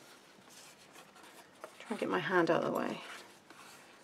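Stiff paper rustles and creases as it is folded.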